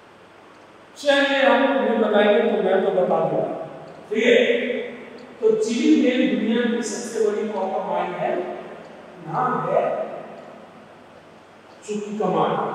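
A man lectures with animation, close by.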